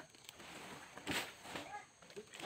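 A palm frond falls and crashes through leaves.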